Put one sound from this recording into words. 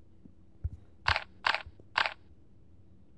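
Menu pages flip with short swishing clicks.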